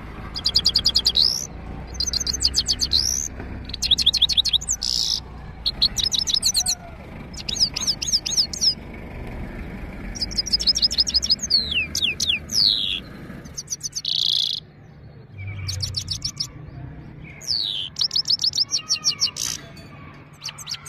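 A goldfinch sings in bursts of rapid, high trills and twittering phrases.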